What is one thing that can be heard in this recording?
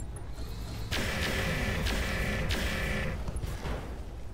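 A laser weapon fires with a long rushing blast.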